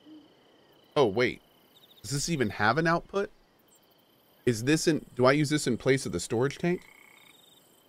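A man talks into a microphone.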